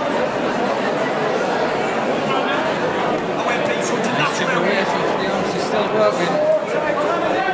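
A man shouts instructions loudly nearby.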